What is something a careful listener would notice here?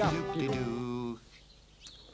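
A small horn toots a wavering note.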